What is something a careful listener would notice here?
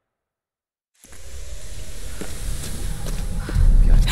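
Footsteps scrape on wet stone in an echoing cave.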